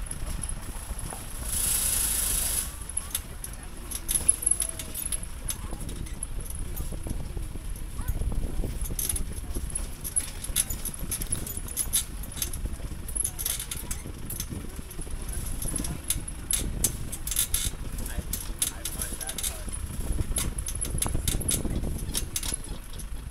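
A vehicle's body rattles and clatters over bumps.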